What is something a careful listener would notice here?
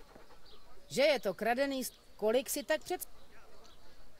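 A woman speaks calmly and firmly, close by.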